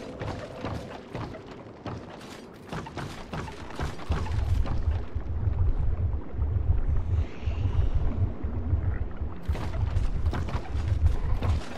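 Heavy footsteps thud on creaking wooden planks.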